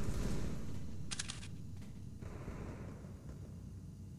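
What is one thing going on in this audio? A sniper rifle scope zooms in with a click.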